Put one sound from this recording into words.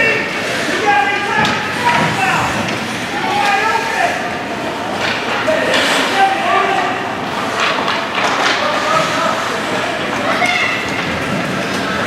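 Skate blades scrape and hiss across ice.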